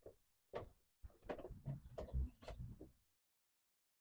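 A plastic panel knocks and rustles as hands handle it.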